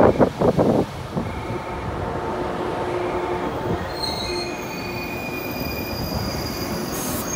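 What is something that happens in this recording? A stopped train hums steadily.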